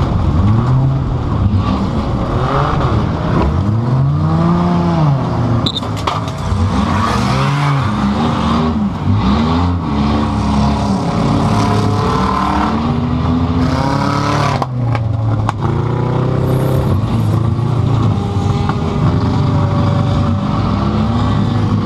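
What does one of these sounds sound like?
A race car engine roars loudly and revs up and down, heard from inside the car.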